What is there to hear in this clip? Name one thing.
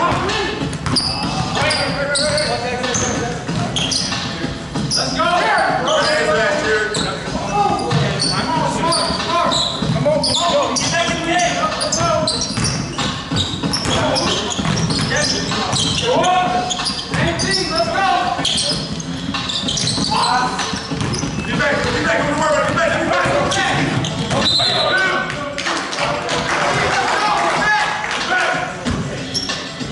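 A basketball bounces on a hardwood floor, echoing in a large hall.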